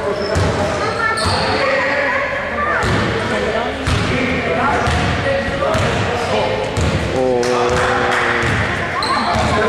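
A basketball bounces on a wooden floor with dull thuds.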